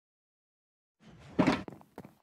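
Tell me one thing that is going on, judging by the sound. A box thuds shut.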